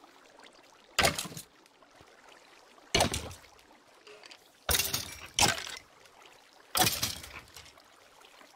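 A sword swishes through the air in sharp sweeps.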